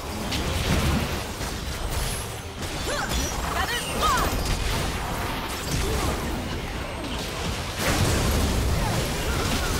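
Magic blasts and hits crackle and whoosh during a fast battle.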